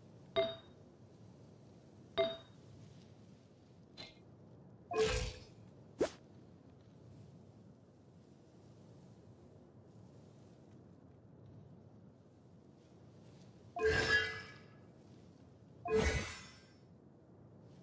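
Short soft interface chimes sound now and then.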